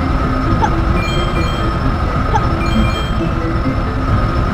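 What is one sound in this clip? Short chiming game pickup tones ring out.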